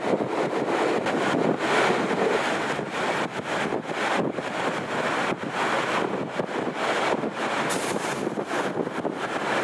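Wind buffets loudly past an open window.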